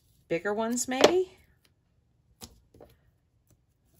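Sticky tape is pulled and peeled with a soft crackle.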